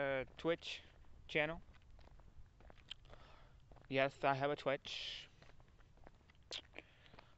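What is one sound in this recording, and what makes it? A young man talks casually close to the microphone.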